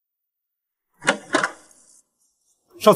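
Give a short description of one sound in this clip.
A door handle clicks and a door swings open.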